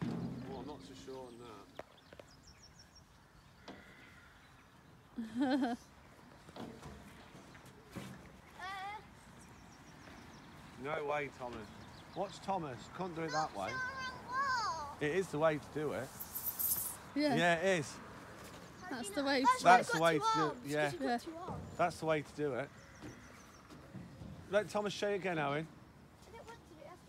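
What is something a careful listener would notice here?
A young boy talks and calls out nearby, outdoors.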